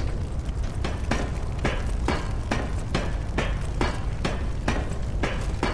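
Footsteps clank steadily on metal ladder rungs.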